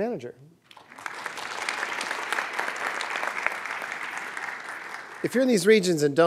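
A group of people applaud.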